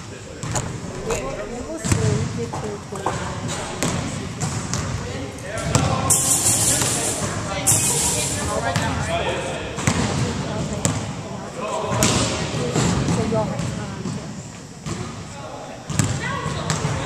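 Young men and women talk and call out across an echoing hall.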